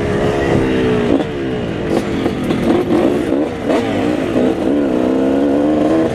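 Other dirt bike engines buzz nearby as riders pass.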